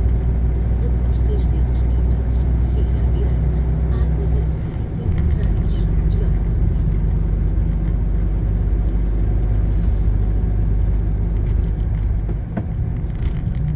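A large vehicle's engine rumbles steadily from inside the cab while driving.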